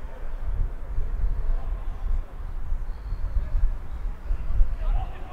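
Wind rumbles across an outdoor field.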